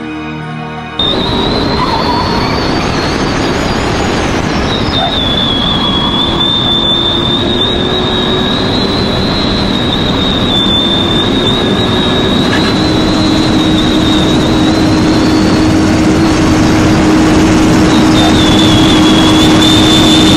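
Wind rushes loudly past a fast-moving car.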